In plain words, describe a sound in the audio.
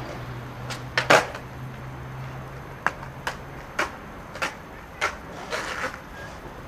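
A skateboard's tail knocks sharply on concrete.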